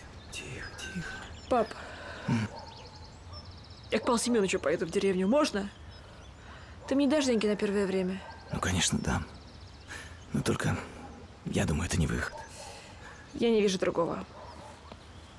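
A man speaks quietly and emotionally, close by.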